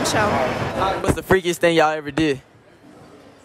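Young women laugh and chatter.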